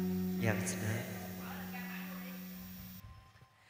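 A man speaks through a microphone over loudspeakers.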